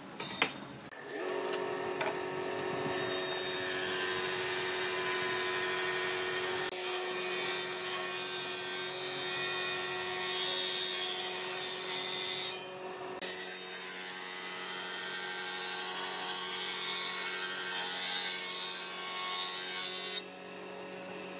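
A jointer machine hums and whines steadily.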